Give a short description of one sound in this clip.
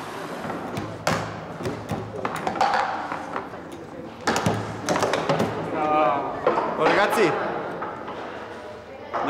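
Foosball rods clack and a ball knocks against the table.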